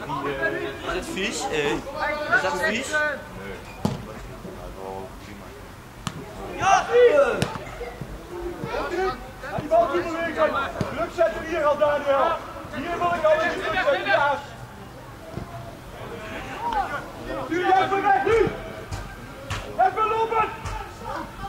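A football is kicked with a dull thud, several times.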